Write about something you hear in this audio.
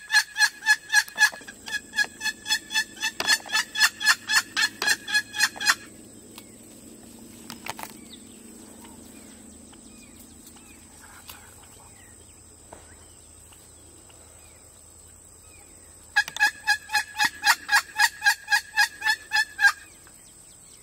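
A wild turkey yelps in a rapid series.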